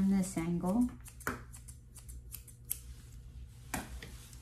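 Scissors snip through fur.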